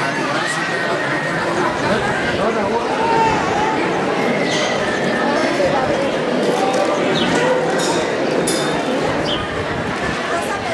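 A crowd of men and women chatter at nearby tables, outdoors.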